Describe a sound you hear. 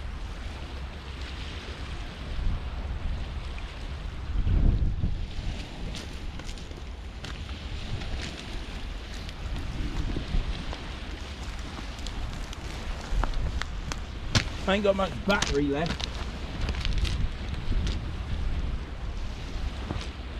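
Wind blusters across an open shore.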